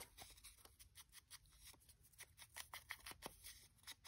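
A stamp taps on paper.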